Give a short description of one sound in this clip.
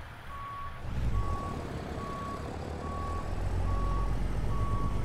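A heavy truck engine idles with a low rumble.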